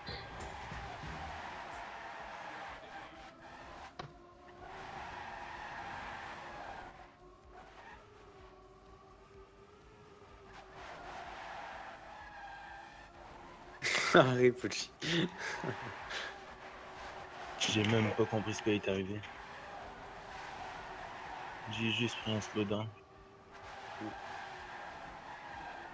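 Racing car engines whine and rev steadily.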